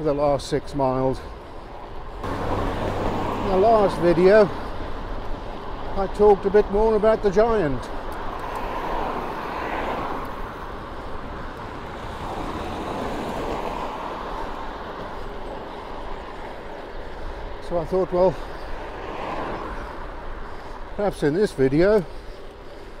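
Bicycle tyres hum steadily on rough tarmac.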